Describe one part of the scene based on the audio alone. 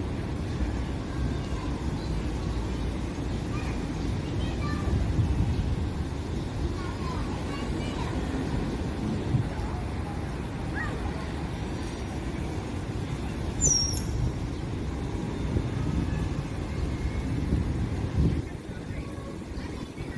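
Small bicycle wheels roll softly over smooth pavement.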